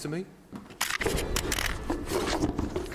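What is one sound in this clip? A man shuffles and scrapes across a hard floor.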